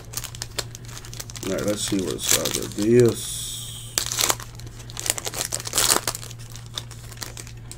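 A foil pack crinkles and tears open.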